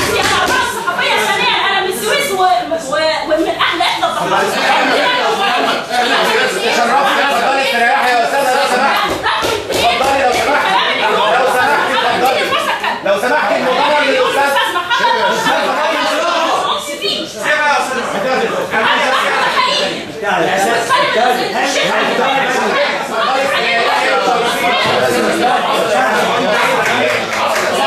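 A crowd of men talk loudly over one another in an echoing room.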